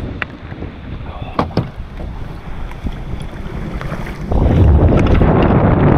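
A kayak hull scrapes over a rough concrete ramp.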